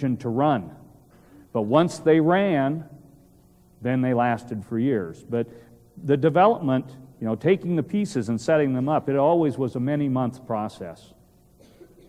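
A man speaks with animation in a large hall, heard through a microphone.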